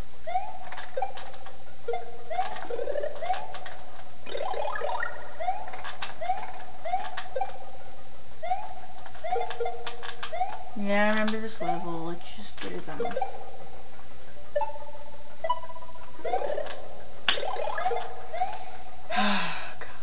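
Short electronic jump sounds chirp upward again and again.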